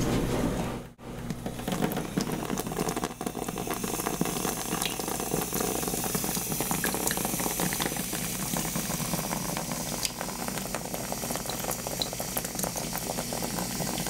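Water sprays steadily from a shower head onto hair.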